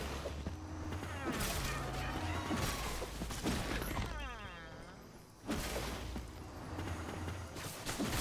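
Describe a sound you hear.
A magic blast bursts with a bright whoosh.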